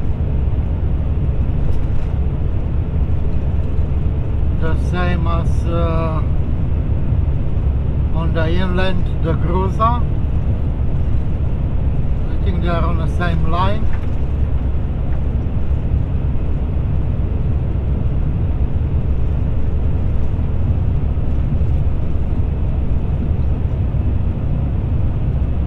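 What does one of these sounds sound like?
Tyres roll steadily on asphalt.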